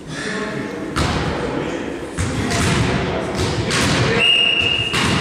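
A volleyball is struck with sharp smacks in an echoing hall.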